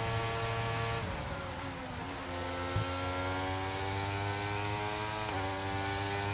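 A racing car engine drops in pitch as the car brakes hard, then climbs again.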